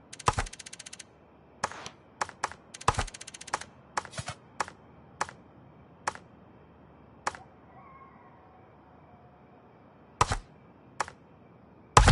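Menu selection clicks tick in quick succession.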